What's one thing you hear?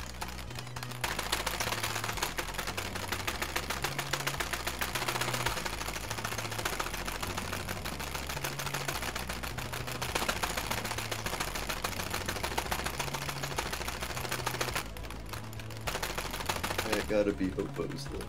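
A mechanical keyboard clatters with rapid, constant key presses.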